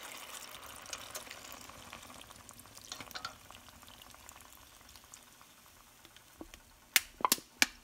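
Liquid pours and splashes into a pot.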